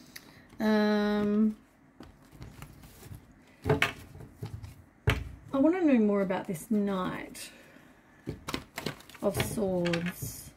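A deck of cards is shuffled with soft flicking sounds.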